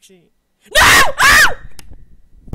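A young man screams loudly into a close microphone.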